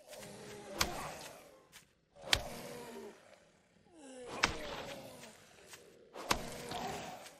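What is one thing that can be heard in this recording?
A heavy weapon strikes a body with a dull thud, again and again.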